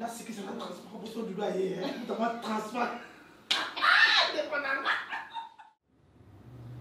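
Two women talk and laugh loudly and cheerfully nearby.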